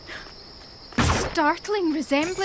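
A small statue shatters with a crash.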